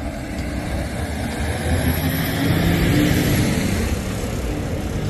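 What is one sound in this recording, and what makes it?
A heavy truck rumbles past close by.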